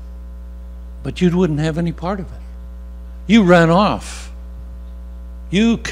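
An elderly man speaks slowly through a microphone, with pauses.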